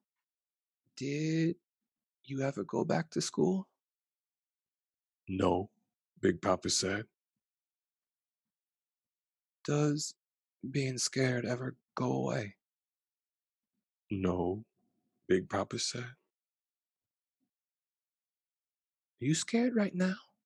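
A man reads a story aloud expressively into a close microphone.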